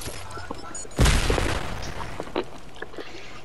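Gunshots crack in rapid bursts.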